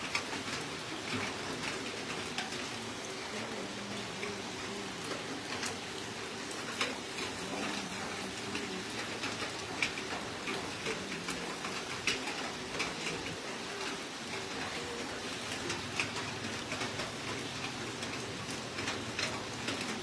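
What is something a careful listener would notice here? Charcoal crackles under a whole pig roasting on a spit.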